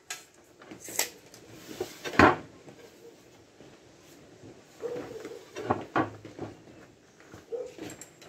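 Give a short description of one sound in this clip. A tape measure clicks and rattles in someone's hands.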